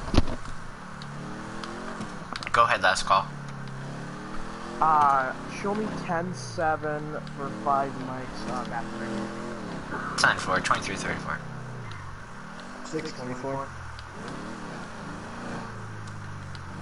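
A car engine hums and revs up and down as the car drives along.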